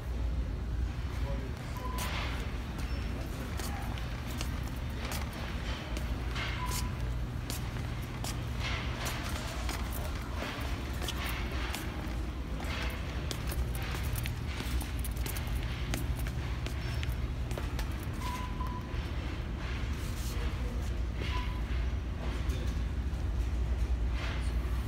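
Shoes shuffle and scuff on a hard smooth floor.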